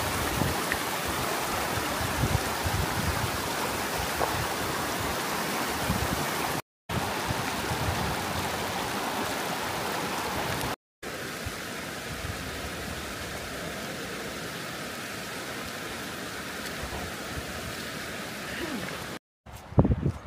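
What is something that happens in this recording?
A shallow stream rushes steadily over stones outdoors.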